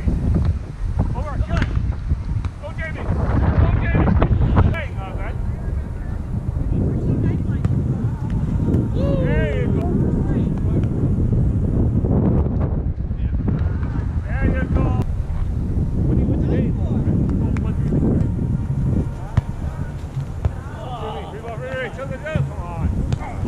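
Young men call out to each other during play, some distance away.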